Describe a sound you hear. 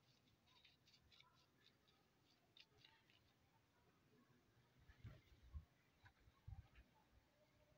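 A paintbrush swishes and scratches over a rough surface.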